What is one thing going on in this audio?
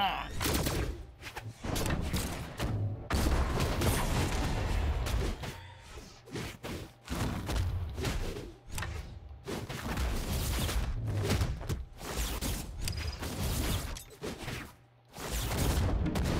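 Game fighters clash with punchy hits and whooshes.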